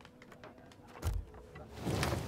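A menu button clicks once.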